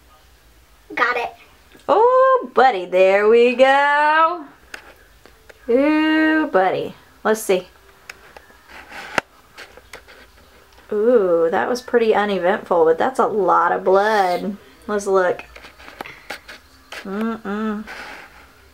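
A young girl talks excitedly and close by.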